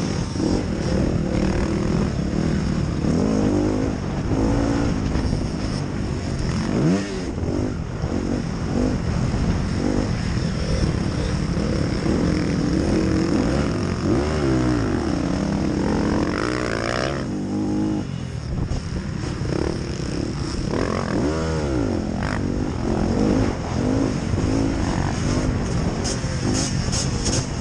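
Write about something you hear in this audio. A dirt bike engine revs loudly up close, rising and falling as gears change.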